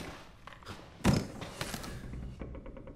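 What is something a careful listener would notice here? A wooden box lid creaks open with a knock.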